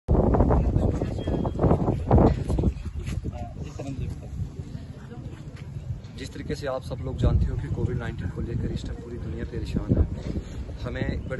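A young man speaks calmly and firmly into microphones outdoors.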